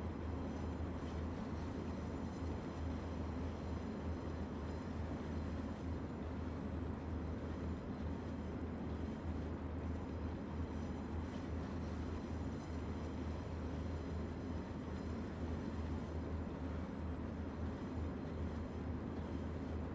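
An electric locomotive hums and rumbles steadily as it runs along the track.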